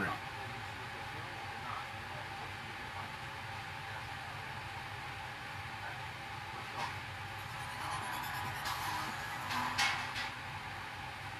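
A small brush scrubs softly against a shoe.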